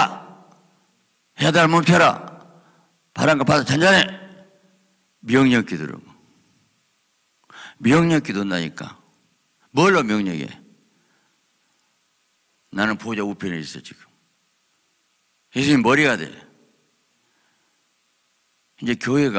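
A middle-aged man speaks slowly and forcefully into a microphone in short phrases, with pauses between them, in a large echoing hall.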